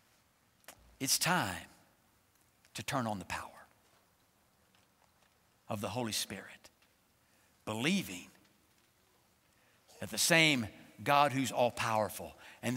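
An elderly man speaks with animation through a microphone, in short bursts with pauses.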